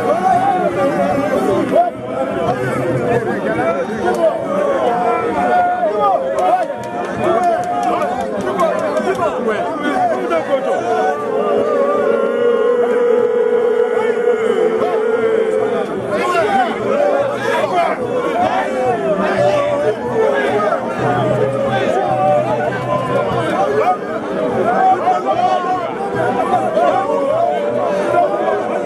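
A large outdoor crowd of men and women shouts and chants loudly and excitedly nearby.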